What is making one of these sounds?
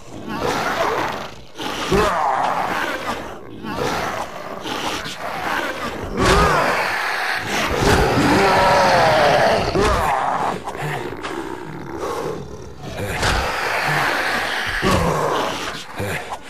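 Heavy blows thud repeatedly against bodies.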